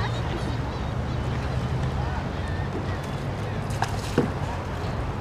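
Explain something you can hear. Paddles splash softly in calm water.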